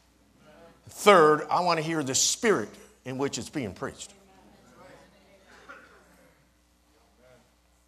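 A man speaks with animation into a microphone, echoing slightly in a hall.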